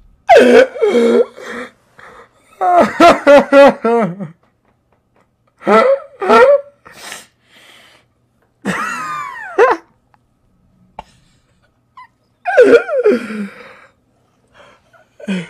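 A young man laughs loudly and helplessly into a microphone.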